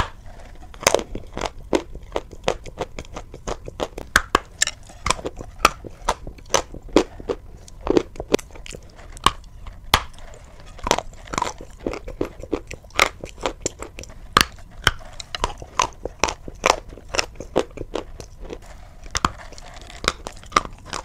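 Ice crunches and cracks loudly between teeth close to a microphone.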